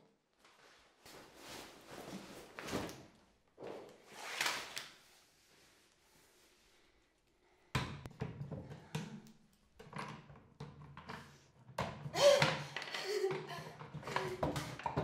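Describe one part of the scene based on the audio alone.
A young woman sobs and gasps for breath close by.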